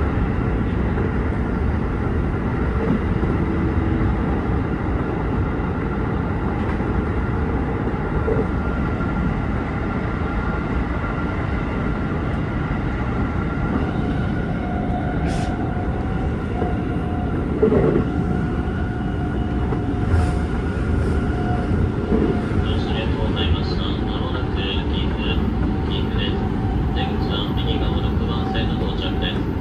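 A train rumbles steadily along the tracks, heard from inside its cab.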